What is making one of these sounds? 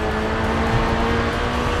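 A car engine hums and revs loudly.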